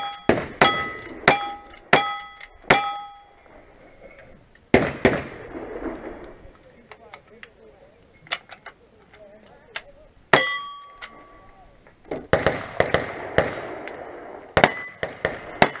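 Gunshots crack in quick succession outdoors.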